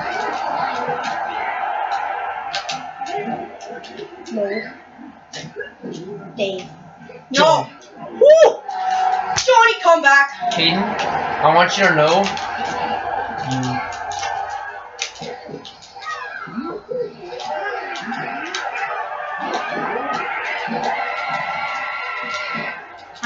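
Upbeat game music plays throughout.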